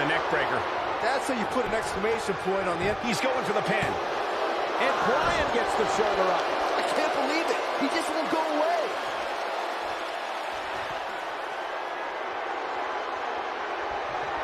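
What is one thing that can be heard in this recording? Wrestlers' bodies thud onto the ring mat.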